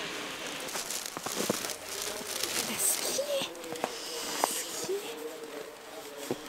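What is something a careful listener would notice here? Gloved hands scoop and pack crunchy snow.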